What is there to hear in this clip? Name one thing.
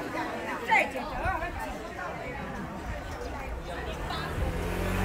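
A middle-aged woman speaks cheerfully close by.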